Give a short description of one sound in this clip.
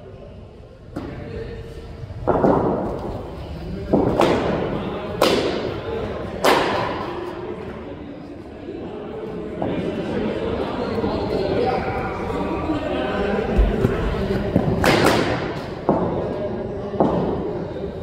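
A cricket ball thuds as it bounces on the pitch.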